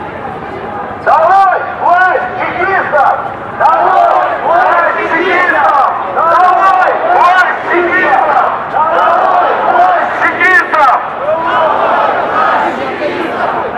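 A crowd of men and women chants loudly nearby.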